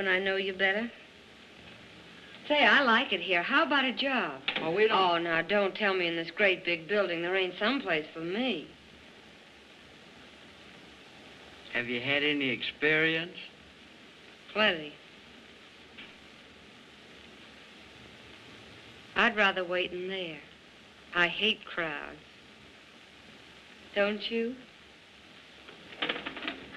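A young woman talks playfully, close by.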